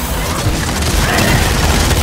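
An explosion bursts into roaring flames.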